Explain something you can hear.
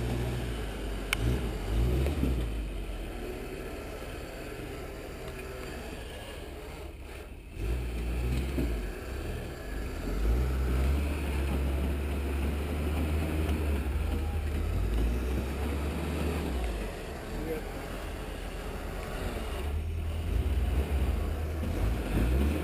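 A lifted pickup truck's engine rumbles under load as it crawls over boulders.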